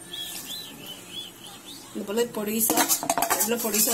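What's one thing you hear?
Chopped tomatoes tumble into a metal pan.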